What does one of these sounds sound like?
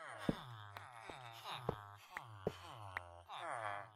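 A pickaxe chips at blocks with short knocks.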